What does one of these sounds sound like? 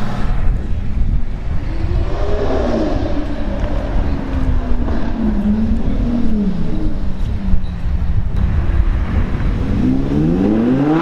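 A sports car engine idles with a deep rumble.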